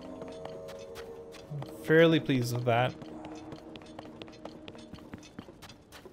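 Footsteps tap on stone stairs.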